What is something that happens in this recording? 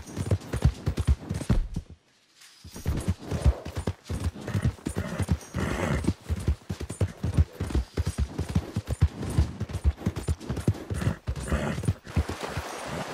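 A horse gallops, its hooves pounding on the ground.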